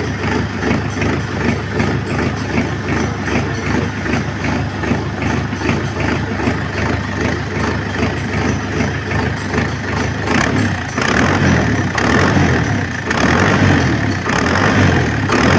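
A tractor diesel engine idles with a steady, rapid chugging close by.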